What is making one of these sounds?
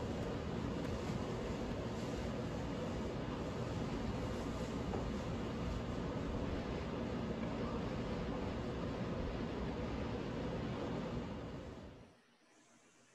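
Light fabric rustles and swishes.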